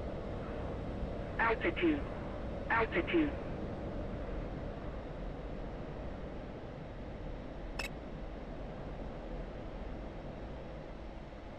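A jet engine rumbles steadily.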